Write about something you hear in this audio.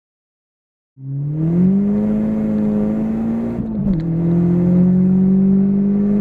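A car engine revs hard and rises in pitch as the car accelerates.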